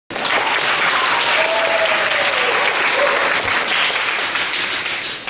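An audience claps in a large echoing hall.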